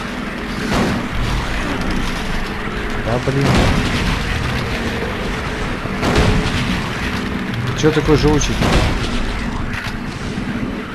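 A young man talks into a microphone close by.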